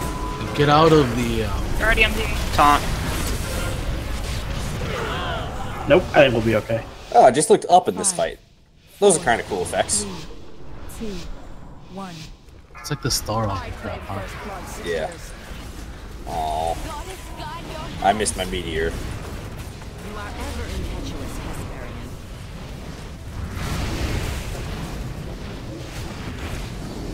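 Magic spells whoosh and crackle during a fantasy battle.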